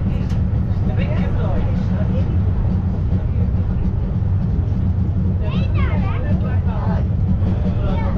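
Train wheels squeal on the rails in rising and falling whines.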